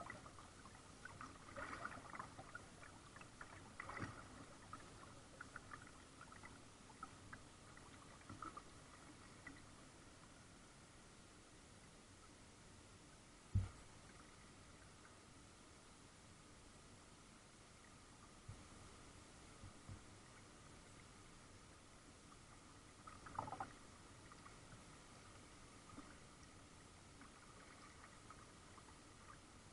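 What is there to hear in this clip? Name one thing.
Water laps softly against the hull of a small boat.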